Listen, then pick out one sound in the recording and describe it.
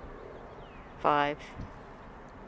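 Small birds chirp nearby.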